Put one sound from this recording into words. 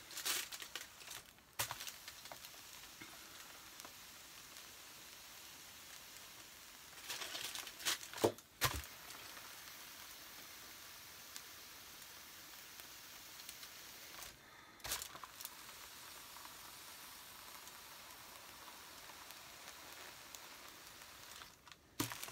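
Aluminium foil crinkles and rustles as an iron presses on it.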